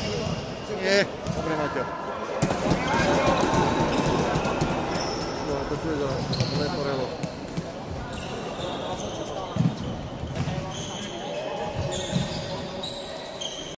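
Floorball sticks clack against a ball and each other.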